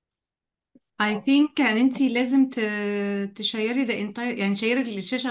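A second woman speaks through an online call.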